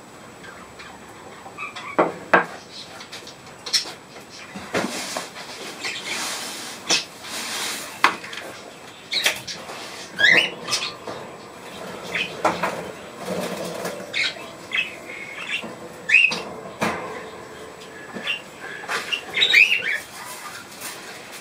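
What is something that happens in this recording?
Small birds chirp and twitter nearby.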